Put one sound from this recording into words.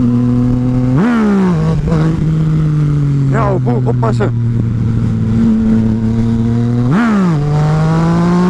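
A motorcycle engine revs up sharply during gear changes.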